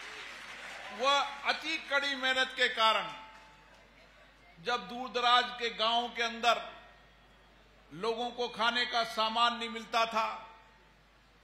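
A middle-aged man speaks forcefully into a microphone in short bursts.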